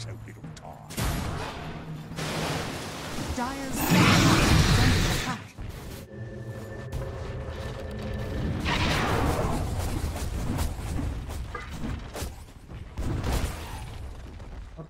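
Game sound effects of clashing blows and spells burst out.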